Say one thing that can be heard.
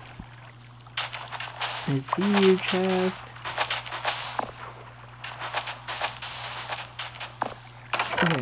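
Gravel crunches as blocks are dug in a video game.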